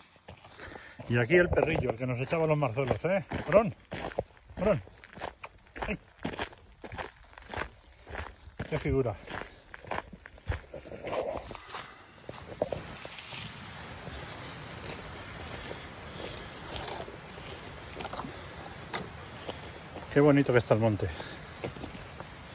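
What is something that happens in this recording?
A middle-aged man speaks close to the microphone.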